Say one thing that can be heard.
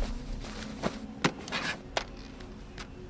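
A telephone handset clicks and rattles as it is picked up.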